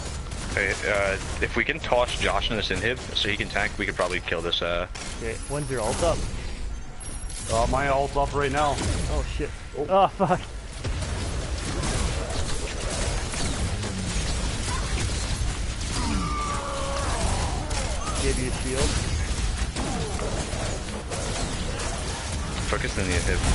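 Energy blasts fire and explosions boom over and over.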